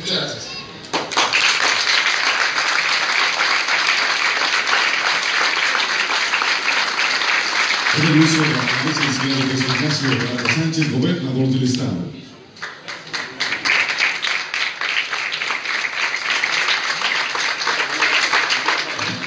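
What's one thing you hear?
A crowd applauds loudly outdoors.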